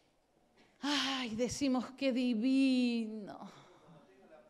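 A woman sings loudly into a microphone, holding long notes in a room with some echo.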